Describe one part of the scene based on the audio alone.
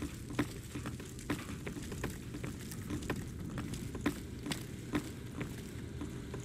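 Footsteps thud on a wooden floor.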